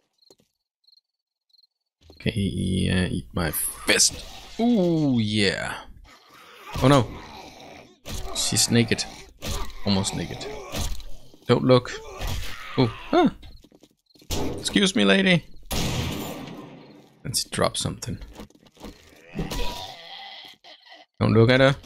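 Zombies snarl and groan close by.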